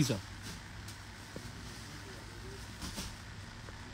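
Silk cloth rustles softly as a hand spreads it out.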